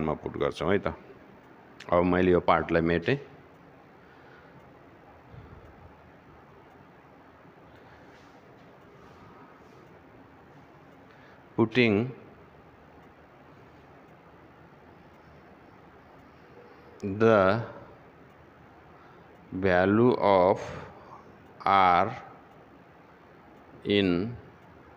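A middle-aged man speaks in short bursts through a headset microphone, explaining calmly.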